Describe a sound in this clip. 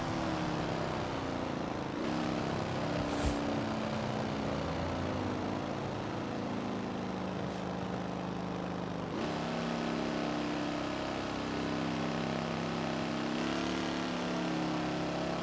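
A racing car engine roars steadily, shifting gears with brief dips in pitch.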